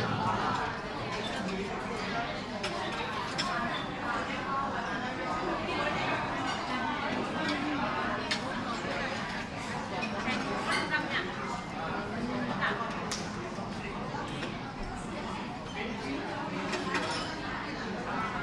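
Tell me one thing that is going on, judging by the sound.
Coin belts jingle softly as a group of dancers sway and step.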